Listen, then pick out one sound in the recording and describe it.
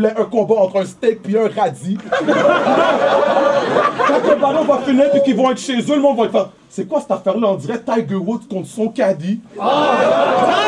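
A young man raps loudly and rhythmically into a microphone.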